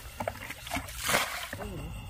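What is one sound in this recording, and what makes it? Water pours from a bucket onto mud.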